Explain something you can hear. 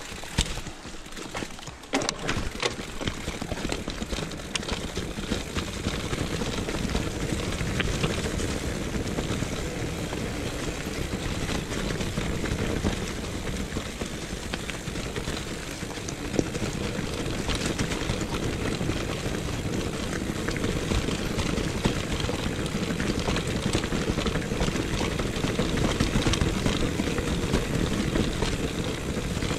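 Wind rumbles steadily past close by.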